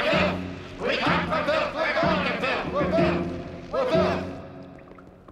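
An elderly man speaks loudly and forcefully.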